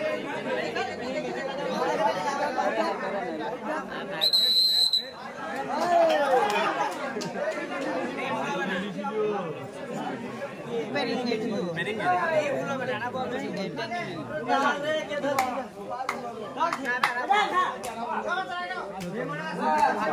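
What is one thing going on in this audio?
A crowd of men and boys shouts and cheers loudly outdoors.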